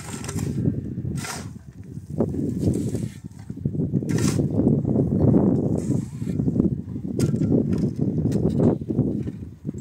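A shovel scrapes into sand and gravel.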